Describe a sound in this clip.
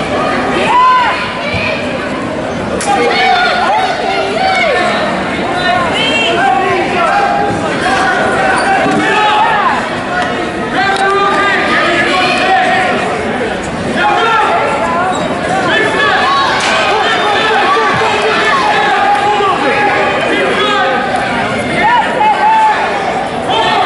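Wrestlers thump and scuffle on a mat.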